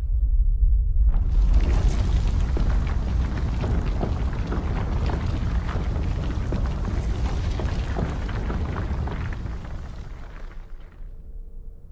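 A heavy stone lift rumbles and grinds as it moves.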